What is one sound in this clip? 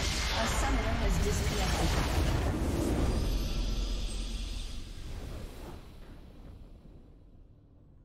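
A loud explosion booms and slowly fades away.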